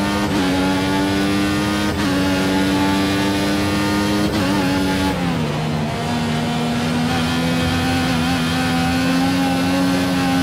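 A racing car engine screams at high revs, shifting up through the gears.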